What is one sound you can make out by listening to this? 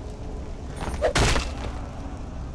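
An axe chops down with a heavy thud.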